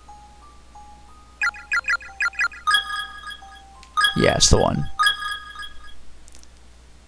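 Short electronic menu chimes beep in quick succession.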